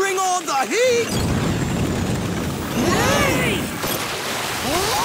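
A burst of flame roars.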